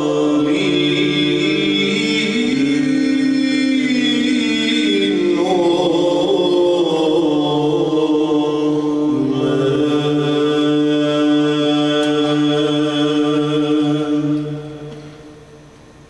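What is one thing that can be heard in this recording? A choir of men sings a sustained chant in a reverberant hall.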